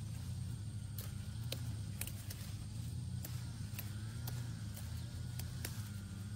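Leafy plant stems rustle and snap as a hand pulls at them.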